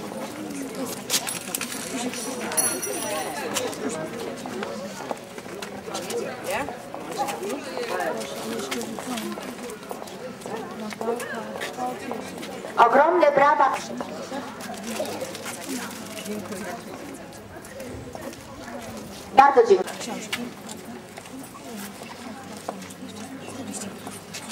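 A woman speaks calmly into a microphone, heard through a loudspeaker outdoors.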